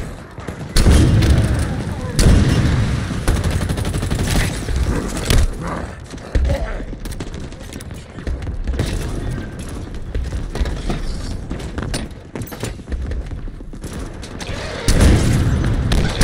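Heavy gunshots boom and rumble.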